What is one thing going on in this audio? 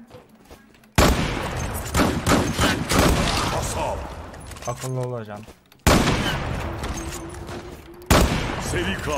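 A rifle fires single loud shots that echo away.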